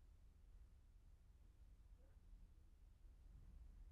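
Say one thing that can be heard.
A car drives slowly toward the listener on a road.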